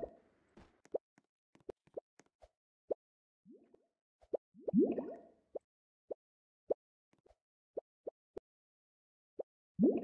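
Short bright game chimes pop again and again.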